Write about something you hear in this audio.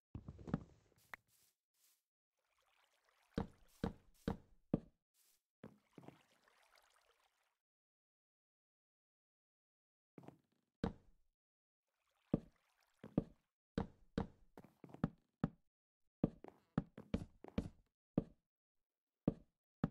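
Wooden blocks are set down one after another with short, hollow knocks.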